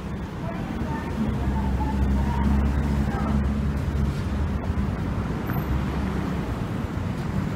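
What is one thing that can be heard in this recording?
Car engines rumble as vehicles pass at an intersection.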